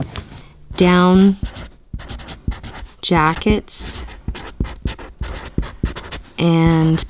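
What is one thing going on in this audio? A felt-tip marker squeaks and scratches as it writes on tape.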